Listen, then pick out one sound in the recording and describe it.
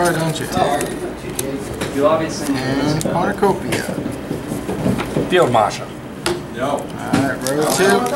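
Playing cards flick and tap softly onto a table.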